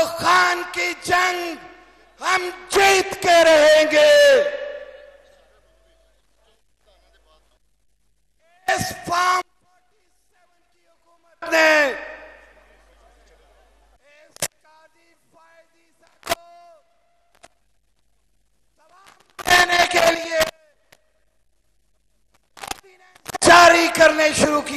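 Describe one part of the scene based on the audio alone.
A man shouts slogans through a loudspeaker, with a long echo outdoors.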